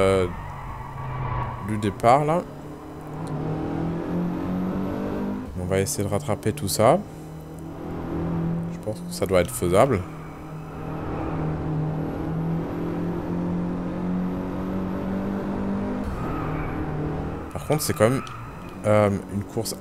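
A car engine drones steadily at speed.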